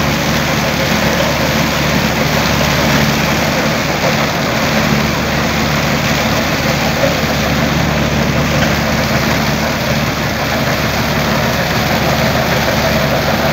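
A tractor engine runs steadily close by.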